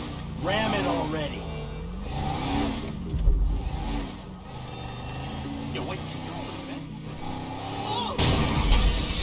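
A car engine roars as a car speeds along.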